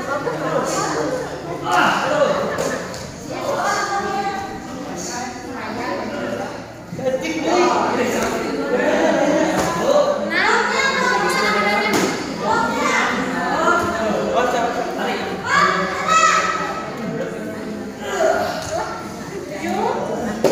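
Kicks thump against padded body guards.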